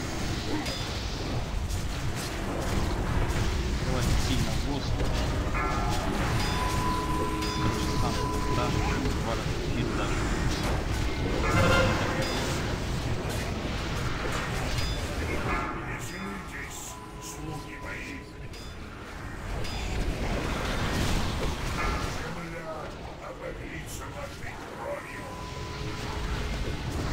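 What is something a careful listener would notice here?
Spells crackle and explode in a busy battle.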